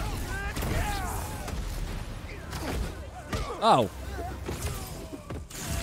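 Punches and explosions thud and crackle in a game fight.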